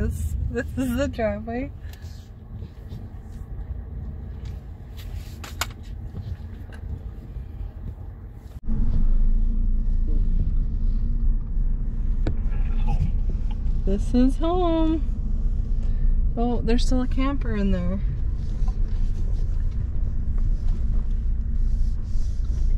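A car drives along a road, heard from inside.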